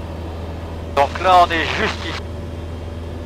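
A man speaks briefly over a headset intercom.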